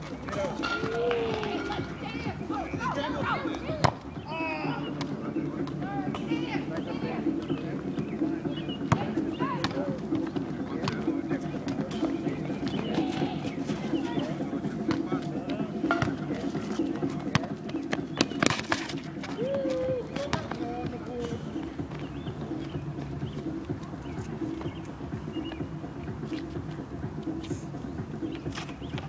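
Young men shout and call out to each other outdoors at a distance.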